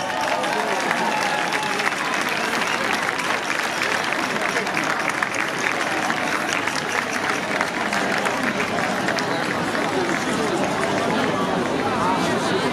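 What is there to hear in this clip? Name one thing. A folk band plays lively music loudly through loudspeakers outdoors.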